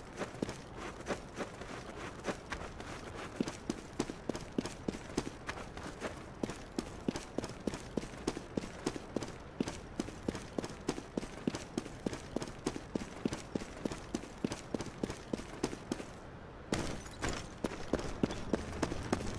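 Quick footsteps run steadily over hard stone.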